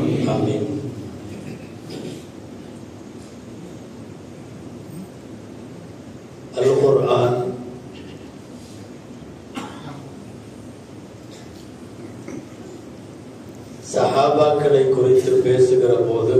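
A middle-aged man speaks forcefully through a microphone and loudspeakers, with pauses between phrases.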